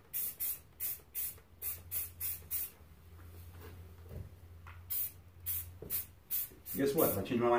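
A spray can hisses in short, quick bursts.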